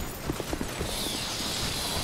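A fire spell whooshes and crackles.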